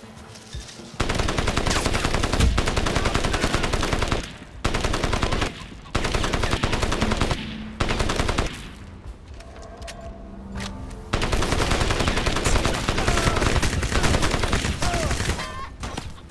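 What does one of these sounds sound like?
An automatic rifle fires in rapid bursts close by.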